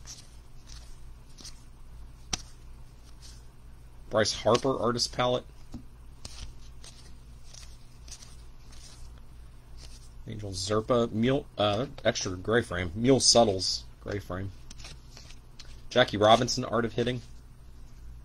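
Cards rustle and slide softly as hands shuffle through them.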